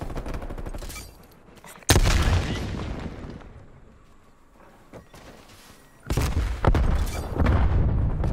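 Footsteps thud quickly across sand.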